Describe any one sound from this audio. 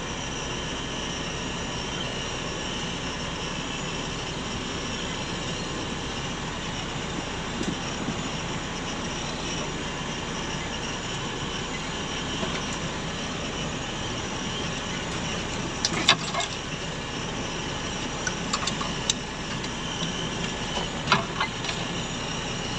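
An engine rumbles steadily as a vehicle crawls along a rough track.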